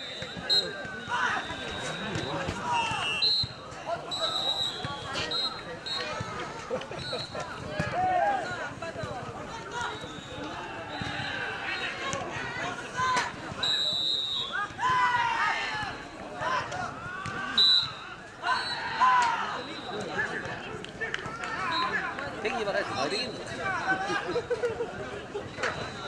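Young men and women shout and cheer outdoors.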